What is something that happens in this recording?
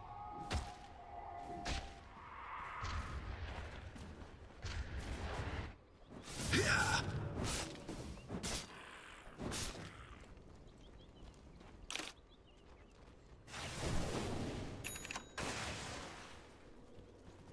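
Magical blasts and hits burst out in quick, loud bursts.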